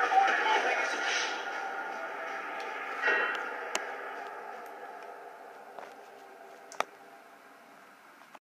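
Music plays through a television loudspeaker and slowly fades.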